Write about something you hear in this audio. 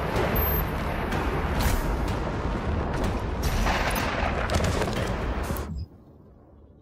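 Loud, rumbling action game sound roars and then cuts off abruptly.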